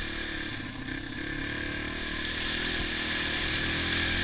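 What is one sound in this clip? Water splashes under dirt bike tyres.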